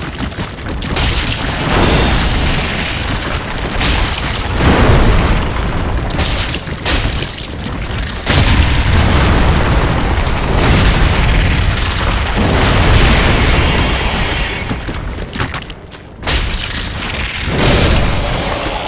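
A sword clashes in sharp strikes.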